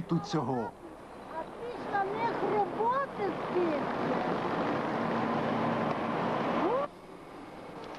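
An elderly woman speaks with animation close by, outdoors.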